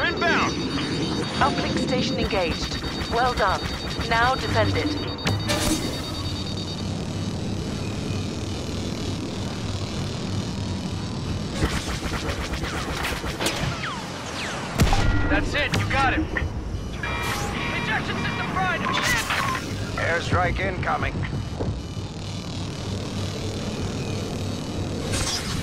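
A starfighter engine roars steadily.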